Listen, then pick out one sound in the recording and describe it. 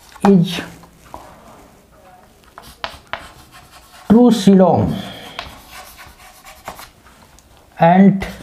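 A middle-aged man speaks slowly and calmly, in short phrases, close by.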